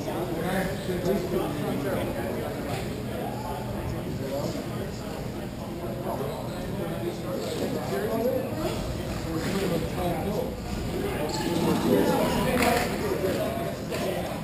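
Skate wheels roll and scrape on a hard floor in a large echoing hall.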